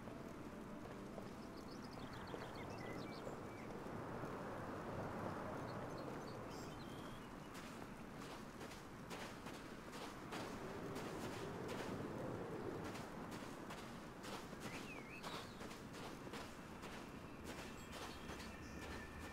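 Magic energy crackles and hums steadily.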